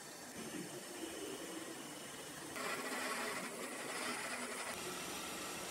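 A drill bit grinds into spinning metal.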